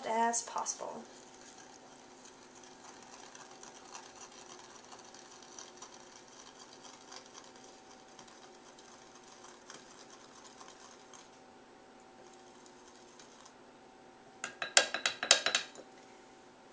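A spoon stirs and clinks inside a glass.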